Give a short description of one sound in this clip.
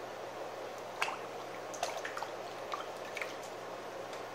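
Hands splash and knock in a water bucket.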